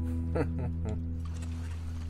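A guitar chord rings out and fades.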